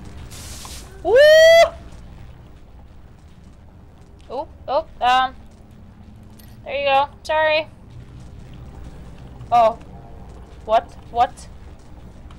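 A young woman talks and exclaims with animation, close to a microphone.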